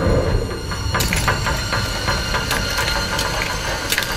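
Glass cracks and shatters.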